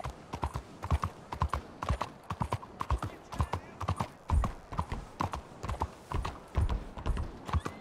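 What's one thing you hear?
Horse hooves clop steadily on a stone street.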